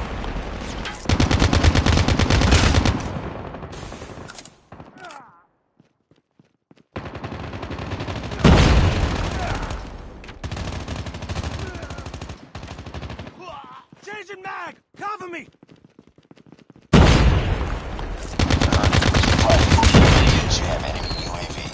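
An assault rifle fires in rapid automatic bursts.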